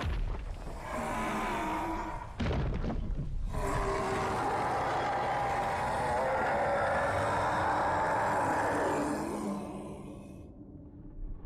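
A huge beast roars loudly with a deep, rumbling growl.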